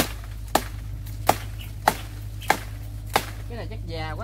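A blade chops sharply into a woody stem several times.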